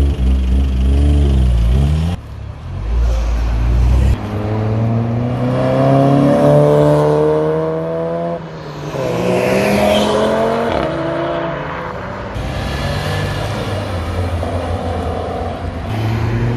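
Car engines rumble and rev loudly as cars drive past one after another.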